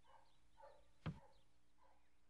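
A door lock clicks sharply.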